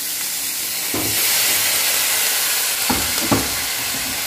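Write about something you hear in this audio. Water pours into a hot pan with a loud hiss.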